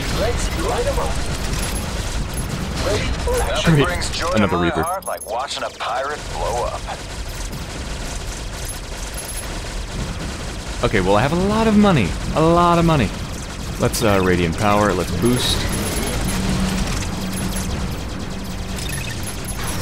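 Laser turrets fire in a video game.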